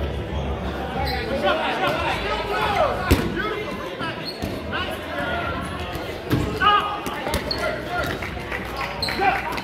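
Several young men and women shout and call out across a large echoing hall.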